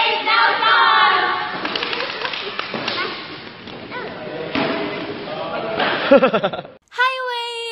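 Young women laugh.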